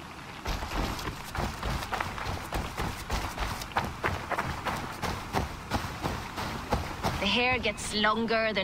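Footsteps crunch quickly through grass and dirt.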